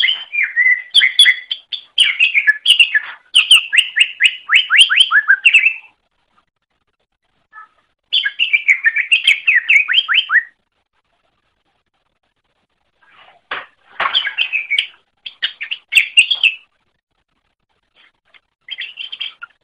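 A small bird sings in fast, bright chirping bursts with pauses between.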